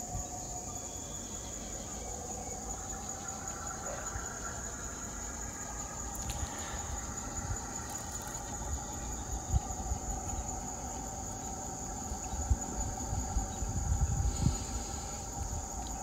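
A small model train rumbles and clatters along its track.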